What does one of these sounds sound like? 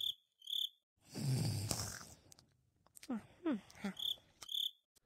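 A cartoon cat snores loudly in its sleep.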